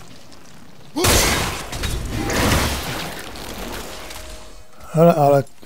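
A loud magical blast explodes with a long roaring rush.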